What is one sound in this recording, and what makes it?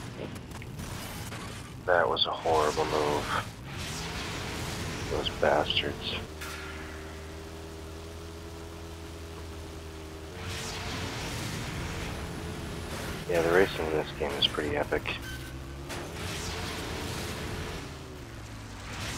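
An off-road buggy's engine drones at speed in a game.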